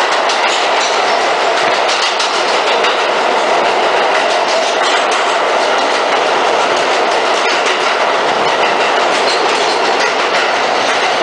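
Metal wheels clatter and screech on the rails.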